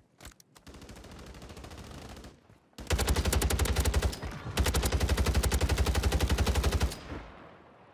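Rapid automatic gunfire rattles in long, loud bursts.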